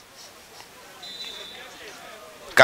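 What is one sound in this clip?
A referee's whistle blows briefly far off.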